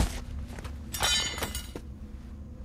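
A metal knife clatters onto a hard floor.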